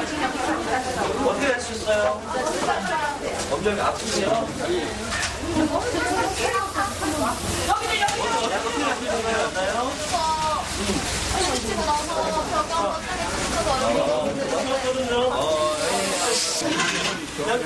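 Many men and women talk at once with urgency.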